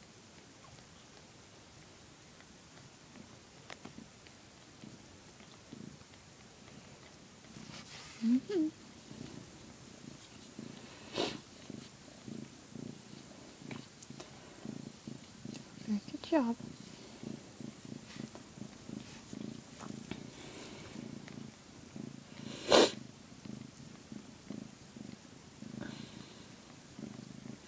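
A cat purrs in a low, steady rumble.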